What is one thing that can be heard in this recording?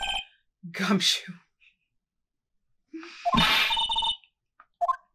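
A young woman talks and laughs close to a microphone.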